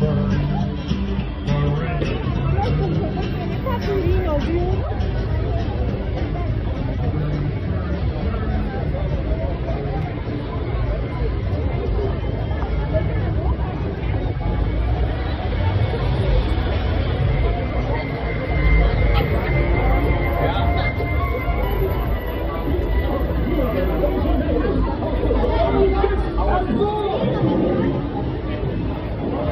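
A crowd chatters and murmurs all around outdoors.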